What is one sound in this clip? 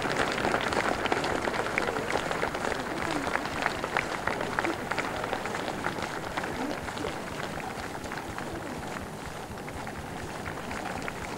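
A large crowd claps outdoors.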